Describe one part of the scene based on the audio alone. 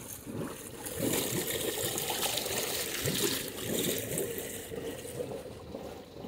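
Water churns and splashes close by.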